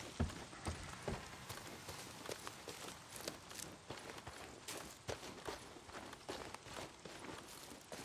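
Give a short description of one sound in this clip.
Footsteps crunch through dry grass and gravel.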